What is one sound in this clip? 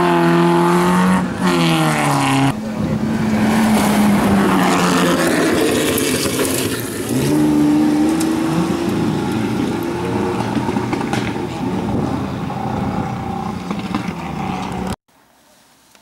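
Tyres crunch and spray over loose gravel.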